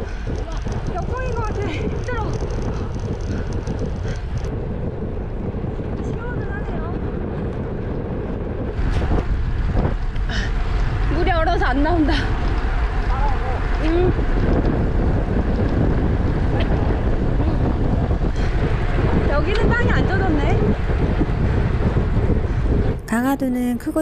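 Wind rushes loudly against the microphone.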